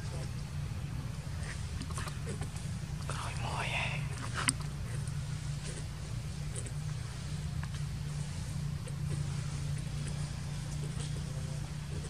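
A monkey chews and smacks on soft fruit up close.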